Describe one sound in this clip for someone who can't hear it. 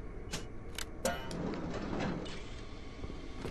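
A door swings open with a creak.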